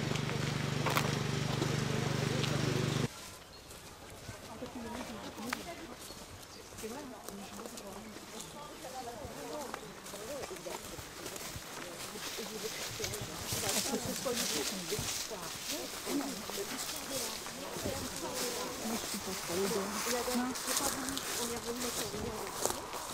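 A group of men and women chat quietly outdoors as they walk.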